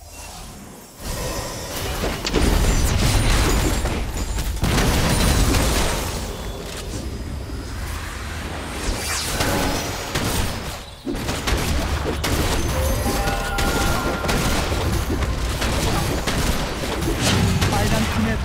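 Game spell effects crackle and boom in a fight.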